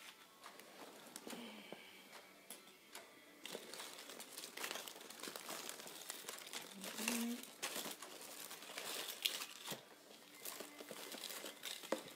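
Something rustles and clicks as it is handled close by.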